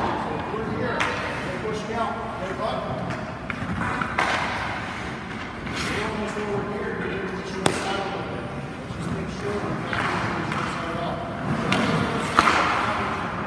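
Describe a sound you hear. A hockey stick knocks sharply on ice.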